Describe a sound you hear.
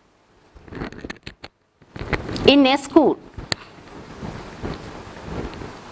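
A woman speaks calmly, close by.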